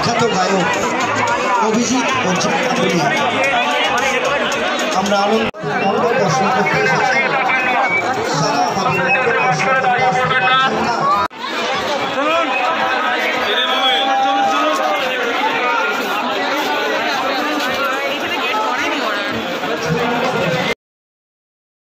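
A large crowd chatters loudly outdoors, with many voices of men and women talking at once.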